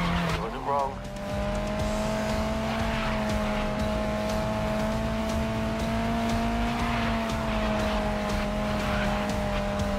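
A race car engine roars at high revs.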